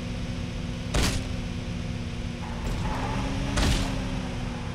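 A vehicle thuds heavily as it bounces over bumps.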